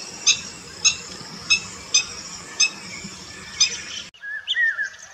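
A black-winged stilt gives a run of sharp, repeated calls.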